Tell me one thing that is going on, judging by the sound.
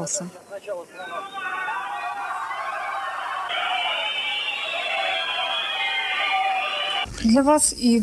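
A crowd cheers and roars in a large hall.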